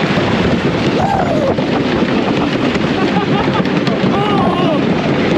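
A wooden roller coaster rattles and roars loudly along its track.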